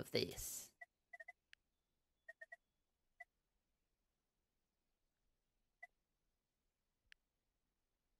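Short electronic interface blips sound as menus open.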